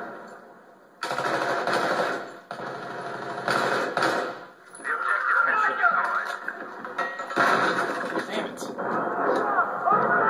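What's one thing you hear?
Rapid gunfire rattles from a television speaker.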